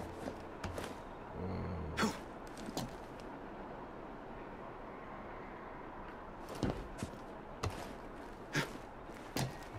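Hands and boots scrape and thud on stone while climbing.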